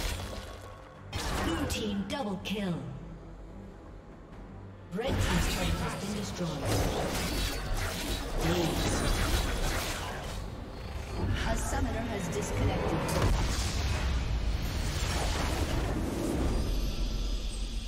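Magic blasts and weapon clashes crackle and boom in a fast fight.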